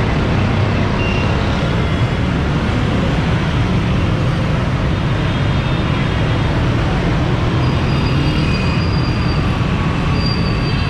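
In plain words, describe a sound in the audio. Horns toot briefly in the traffic.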